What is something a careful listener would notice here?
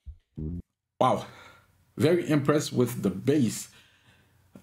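A man talks calmly and clearly, close to a microphone.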